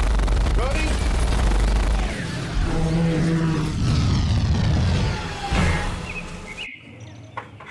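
Explosions boom and sparks crackle loudly.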